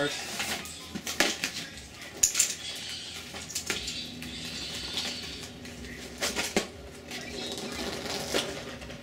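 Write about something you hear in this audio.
Footsteps tap on concrete.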